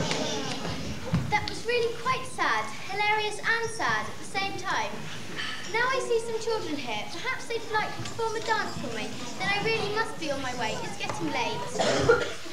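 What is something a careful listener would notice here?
A woman speaks clearly on stage, heard from across a hall.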